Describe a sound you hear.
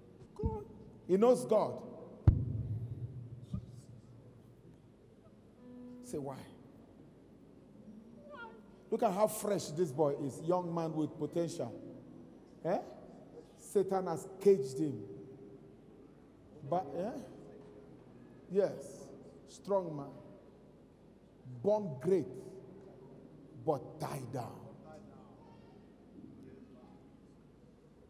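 A man preaches in short, loud bursts through a microphone in a large hall.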